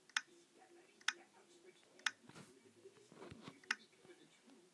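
Short, sharp game menu clicks sound now and then.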